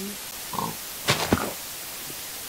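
A sword strikes a creature with sharp thuds.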